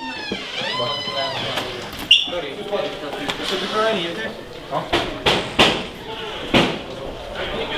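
Footsteps shuffle along a hard floor.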